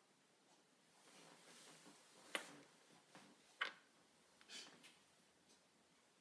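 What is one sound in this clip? A hand knocks and clicks against a plastic machine.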